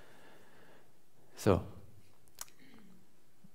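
A young man speaks briefly and calmly.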